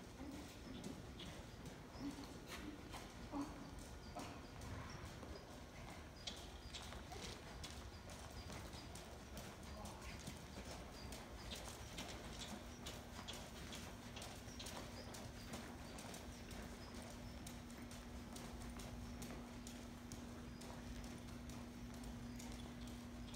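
Horse hooves thud softly on sand in a large indoor arena.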